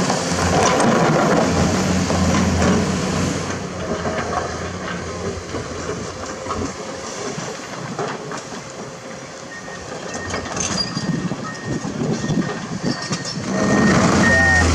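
A diesel hydraulic excavator engine works under load.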